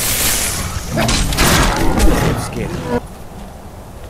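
A large creature growls and roars in pain.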